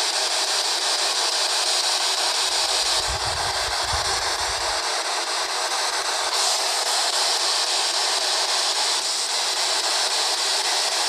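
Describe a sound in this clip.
A handheld radio scanner hisses with loud static throughout.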